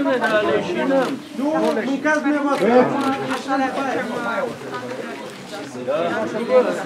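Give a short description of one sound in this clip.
Several men talk at once nearby, outdoors.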